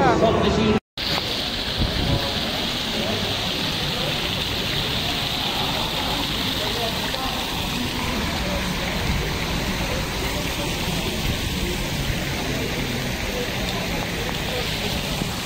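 A fountain splashes steadily outdoors.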